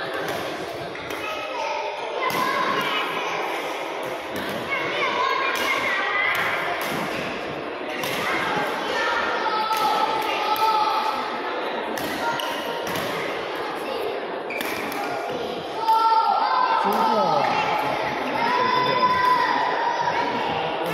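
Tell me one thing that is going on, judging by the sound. Badminton rackets smack shuttlecocks again and again in a large echoing hall.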